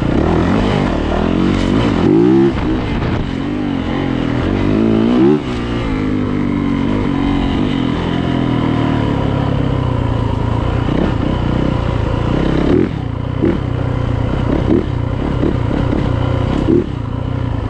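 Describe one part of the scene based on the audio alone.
Tyres crunch over leaves and dirt.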